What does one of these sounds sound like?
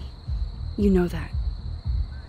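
A young man speaks briefly into a close microphone.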